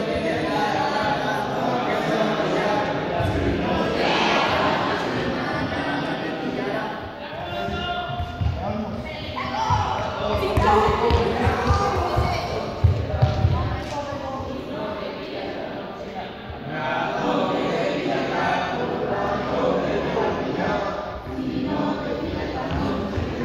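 Young people chatter and call out in a large echoing hall.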